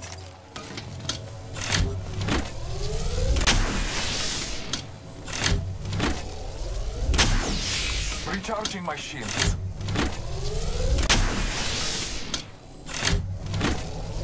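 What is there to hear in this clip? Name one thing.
A device hums and crackles with electric energy as it charges.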